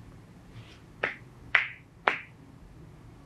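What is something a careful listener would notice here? Hands slap lightly on a leg.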